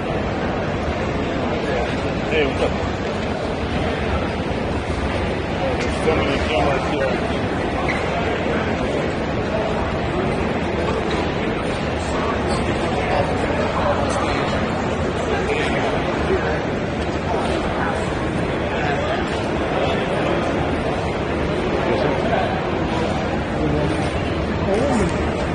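A crowd chatters loudly nearby.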